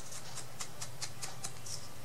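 Small scissors snip paper.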